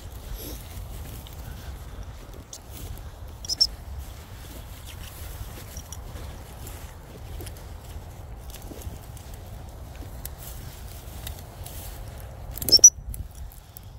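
Footsteps swish through long grass.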